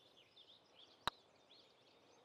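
A putter taps a golf ball once.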